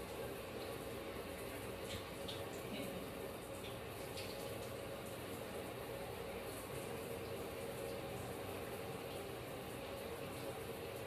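Hands scrub and squish shampoo lather through wet hair.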